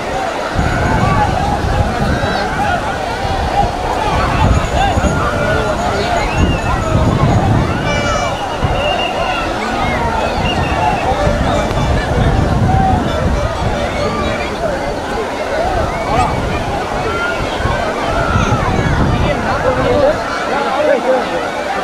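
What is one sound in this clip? A large crowd of men and women chatters and shouts outdoors.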